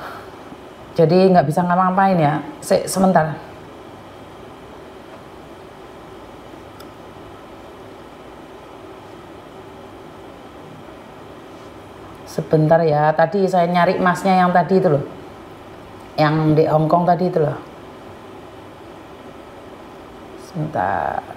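A woman speaks calmly close by, in short bursts with pauses.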